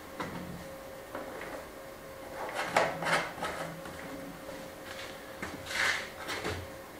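Small objects clatter and tap on a hard surface close by.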